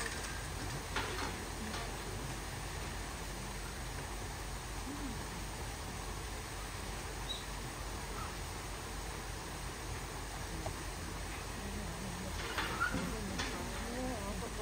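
A hanging rubber tyre bumps and knocks against a metal gate.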